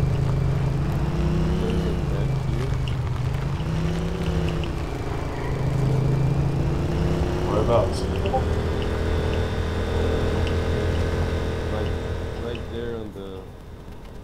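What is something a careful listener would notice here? A small motor engine hums and revs up and down.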